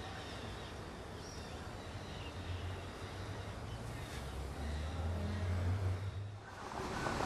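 Bees buzz close by.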